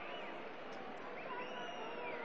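A crowd cheers and shouts in a large stadium.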